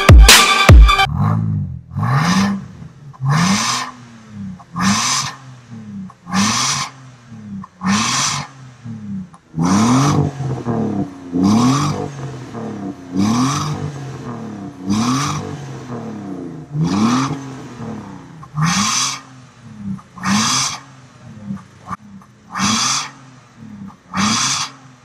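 A car engine idles with a deep, rhythmic exhaust burble.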